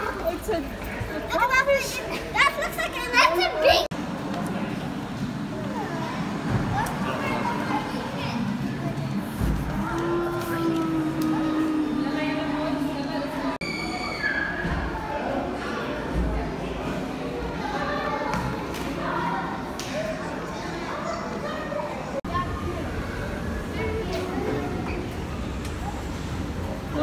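A young girl squeals and chatters excitedly nearby.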